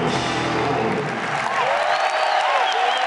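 A rock band plays loudly through big amplifiers and then stops.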